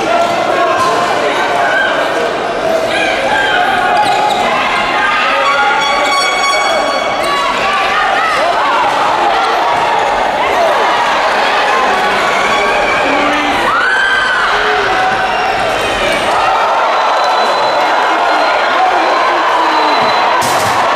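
A handball bounces on the court.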